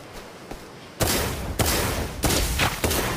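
Heavy weapon blows strike with loud crashing bursts.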